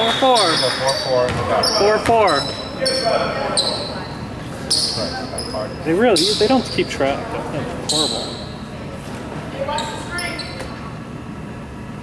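Sneakers squeak on a hardwood floor in a large echoing hall.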